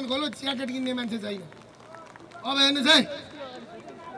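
A man shouts forcefully into a microphone outdoors.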